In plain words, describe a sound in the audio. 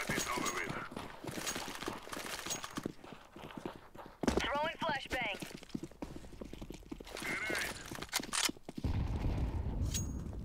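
Footsteps run quickly over hard stone ground.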